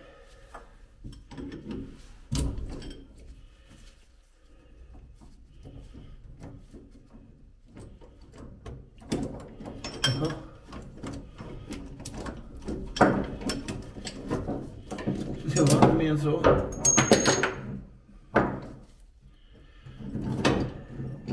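Metal tools clink and scrape against metal parts close by.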